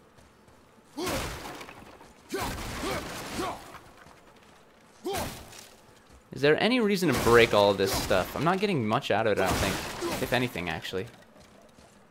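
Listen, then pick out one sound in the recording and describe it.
Wooden crates smash and splinter with heavy crunching blows.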